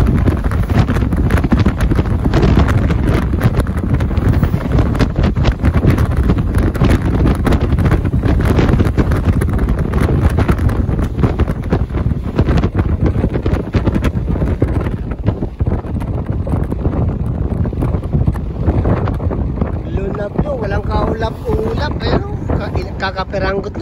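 Tyres hum steadily on a paved road.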